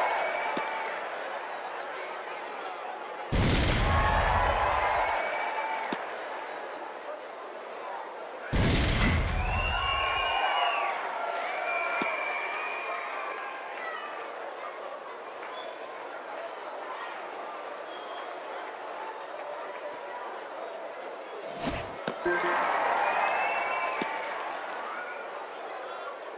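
A crowd murmurs and cheers throughout a large stadium.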